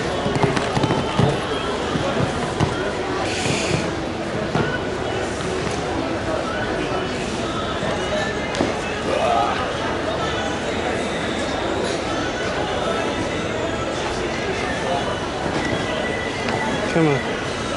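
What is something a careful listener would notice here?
A crowd murmurs in an open-air arena.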